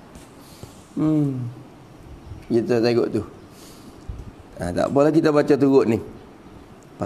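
A man speaks calmly into a nearby microphone, with pauses between phrases.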